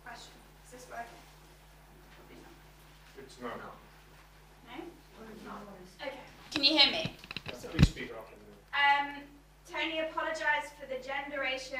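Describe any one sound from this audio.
An elderly man speaks into a microphone, calmly and with pauses.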